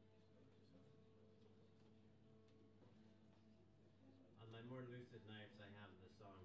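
Two acoustic guitars play a gentle tune together, heard from a distance in a large hall.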